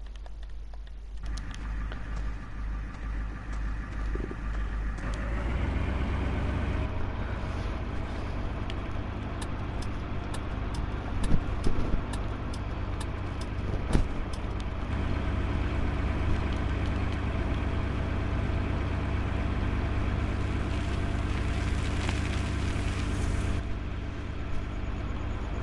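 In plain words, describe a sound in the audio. A truck engine rumbles steadily and revs up as the truck drives off.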